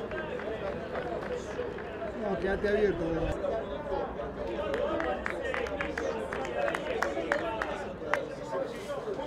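Players clap their hands.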